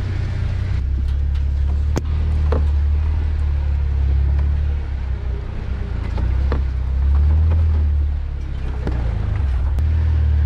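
Vehicle tyres bump and creak over a rough dirt track.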